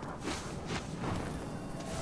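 A swirling portal hums and whooshes.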